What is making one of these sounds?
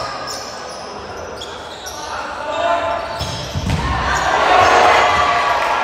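A volleyball is struck with a hard slap.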